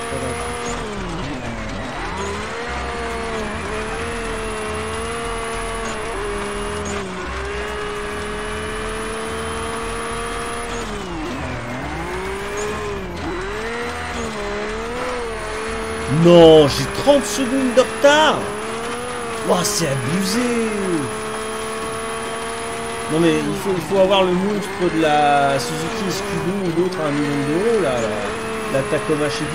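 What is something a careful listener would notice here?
A rally car engine revs and roars, rising and falling as gears change.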